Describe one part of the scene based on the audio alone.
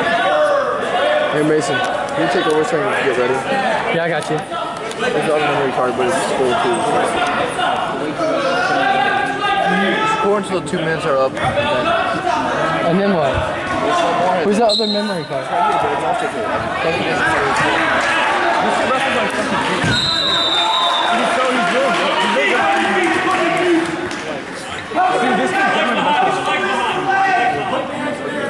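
A crowd of men and women shouts and calls out encouragement nearby in a large echoing hall.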